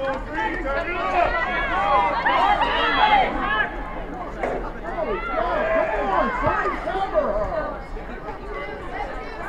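A crowd of young spectators cheers and shouts excitedly outdoors.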